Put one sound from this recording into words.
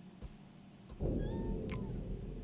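A heavy door scrapes open with a low rumble.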